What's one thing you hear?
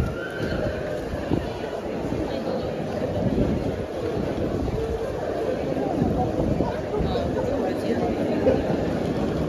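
A crowd chatters and murmurs all around.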